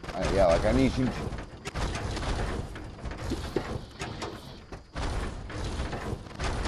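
Footsteps thud quickly on a hollow metal roof.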